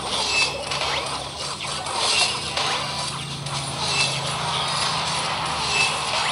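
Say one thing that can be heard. Game battle sound effects clash and chime rapidly.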